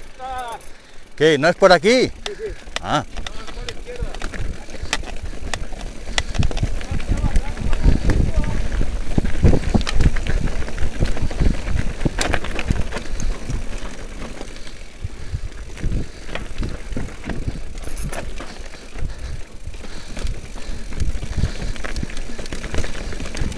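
Bicycle tyres rattle and crunch over rough, rocky ground.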